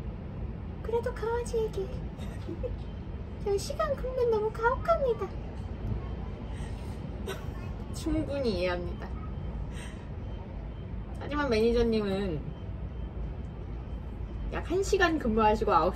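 A woman speaks softly and warmly nearby.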